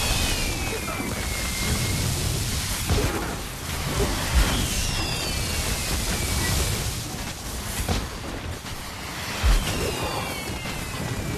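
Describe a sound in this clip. Magic spells crackle and burst in rapid succession.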